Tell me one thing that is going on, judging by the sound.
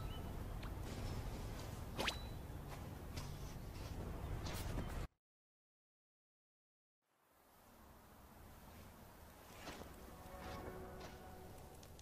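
Light footsteps patter quickly on grass.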